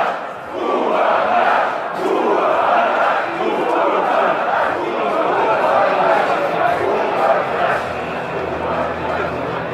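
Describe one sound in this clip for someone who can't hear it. A man speaks calmly into a microphone, heard through a television speaker in a room.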